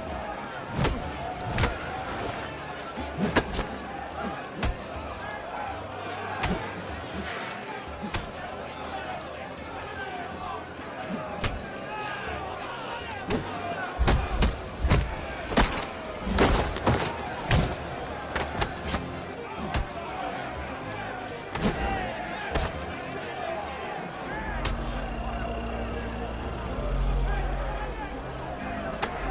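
A crowd of men shouts and jeers.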